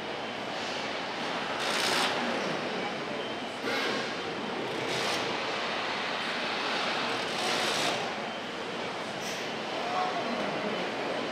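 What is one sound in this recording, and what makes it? Machinery hums steadily in a large echoing hall.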